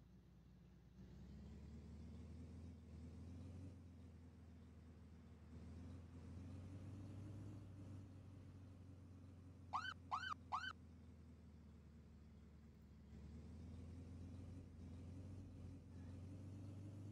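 A vehicle engine drones louder and rises and falls in pitch as it drives.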